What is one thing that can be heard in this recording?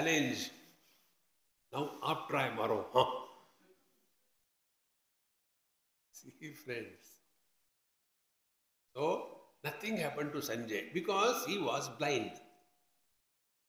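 An elderly man speaks calmly into a microphone, in pauses.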